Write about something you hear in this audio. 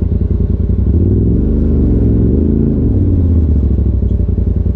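A side-by-side UTV engine revs up briefly and drops back.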